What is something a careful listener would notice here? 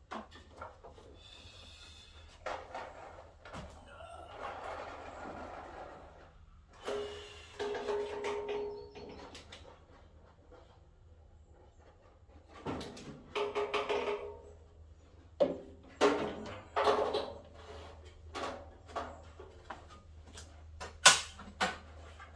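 Metal parts clank and knock close by.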